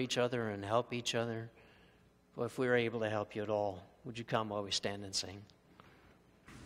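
An older man speaks calmly into a microphone in a large echoing hall.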